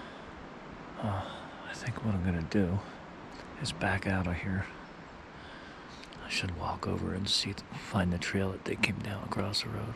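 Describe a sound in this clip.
An older man speaks quietly in a low voice close by, outdoors.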